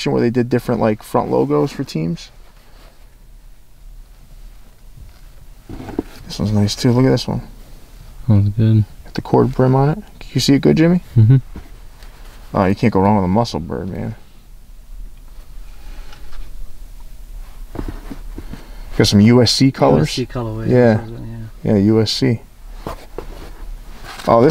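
Caps rustle softly as hands handle them.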